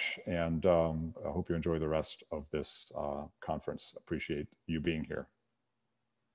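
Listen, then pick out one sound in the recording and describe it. A middle-aged man speaks calmly into a microphone, heard as if through an online call.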